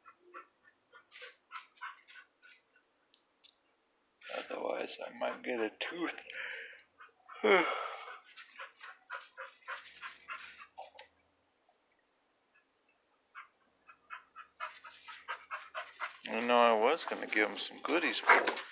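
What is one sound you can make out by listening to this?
A hand pats and rubs a dog's fur.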